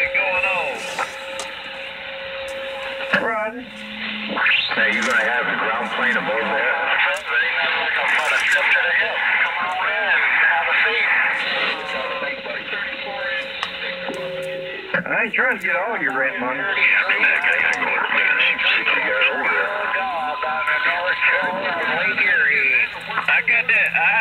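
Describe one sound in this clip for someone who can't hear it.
A radio receiver crackles and warbles with loud, noisy transmissions through its speaker.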